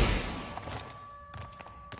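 Someone climbs a wooden ladder.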